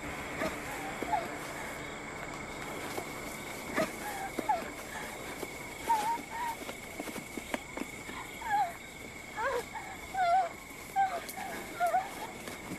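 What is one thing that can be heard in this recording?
A small animal squeaks and chirps repeatedly.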